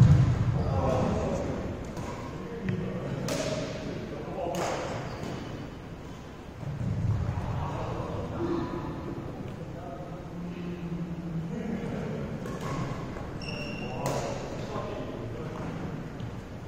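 Badminton rackets strike shuttlecocks with sharp pops in a large echoing hall.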